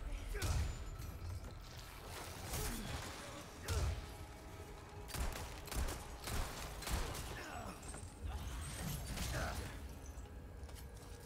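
Heavy blows and thuds land in a loud struggle.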